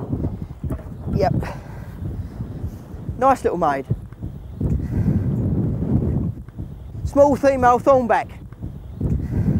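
A man speaks outdoors.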